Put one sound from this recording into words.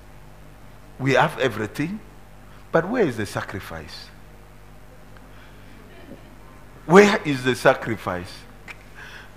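A middle-aged man speaks with animation through a headset microphone, in short bursts with pauses.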